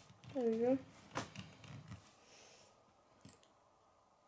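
A small toy car's wheels roll on a wooden table.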